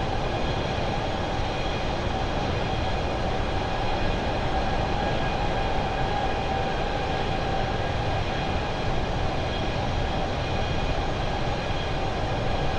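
Jet engines roar steadily with a constant rushing drone.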